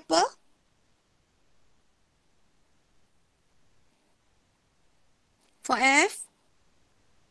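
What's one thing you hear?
A woman speaks briefly through an online call.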